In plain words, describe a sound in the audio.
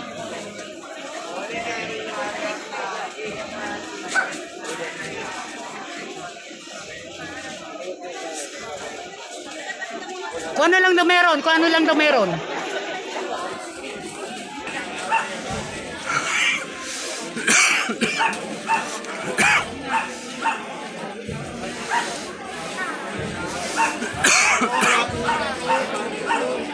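A large crowd murmurs and sings together outdoors.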